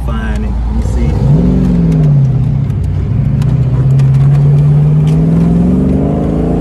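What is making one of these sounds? A car engine hums and revs up as the car speeds along.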